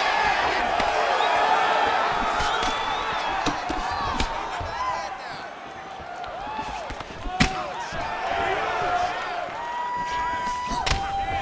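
A crowd cheers and whistles in a large hall.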